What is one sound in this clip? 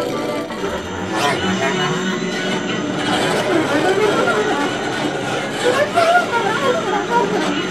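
A bass clarinet plays a wandering, improvised melody up close.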